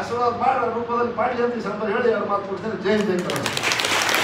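An elderly man speaks calmly into a microphone over a loudspeaker.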